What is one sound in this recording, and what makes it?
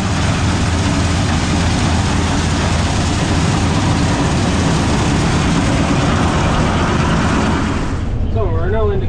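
A combine harvester engine roars loudly close by.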